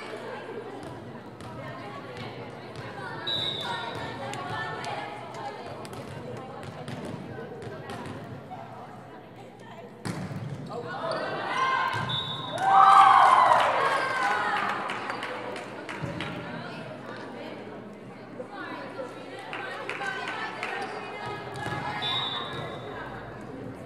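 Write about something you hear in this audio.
A volleyball thumps off players' arms and hands.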